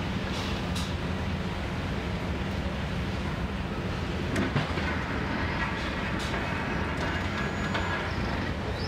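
A heavy excavator engine rumbles steadily.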